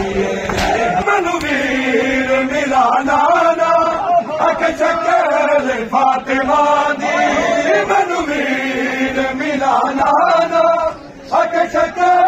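A man chants a loud, wavering lament outdoors.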